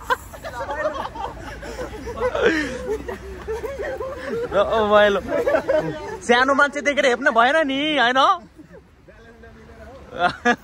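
Young men shout and laugh excitedly close by, outdoors.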